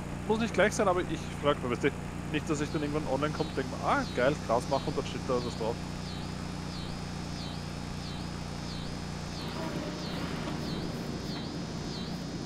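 A grain auger hums steadily as it runs.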